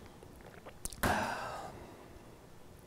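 A man breathes out heavily near a microphone.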